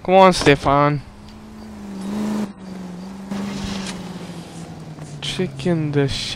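A car engine starts and idles with a low hum.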